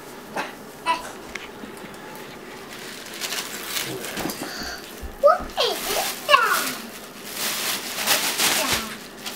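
Tissue paper rustles and crinkles as it is pulled from a gift bag.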